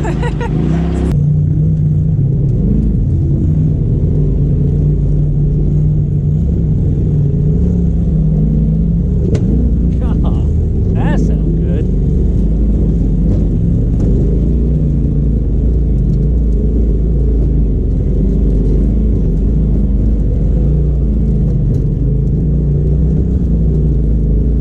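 An off-road vehicle's engine rumbles steadily as it crawls along.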